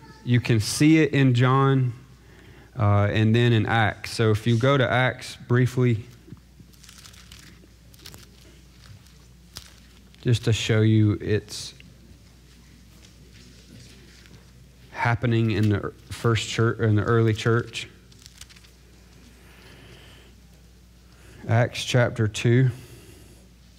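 A man speaks calmly into a microphone, in short phrases with pauses.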